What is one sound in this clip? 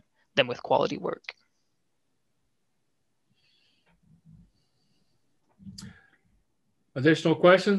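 A young man speaks calmly through an online call microphone, with pauses.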